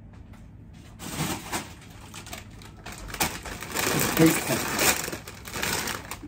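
A plastic chip bag crinkles loudly.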